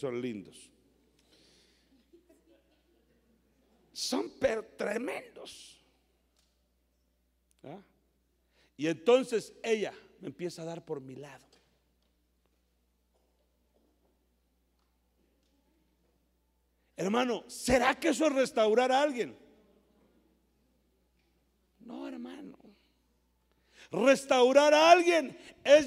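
A middle-aged man preaches with animation into a microphone, in bursts with long pauses.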